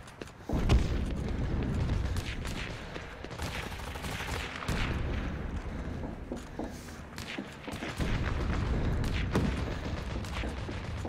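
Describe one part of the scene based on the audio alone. Footsteps thud and clank across floors and up metal stairs.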